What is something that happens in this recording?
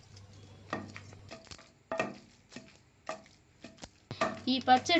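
A heavy wooden pestle thuds against a stone mortar in a steady rhythm.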